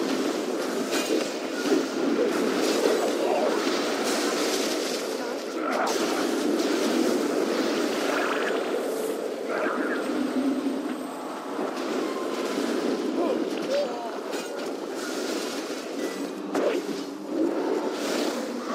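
Spell and weapon effects crackle and clash in a video game battle.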